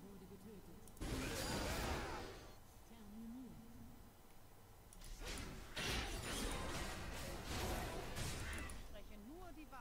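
Game sound effects whoosh and chime.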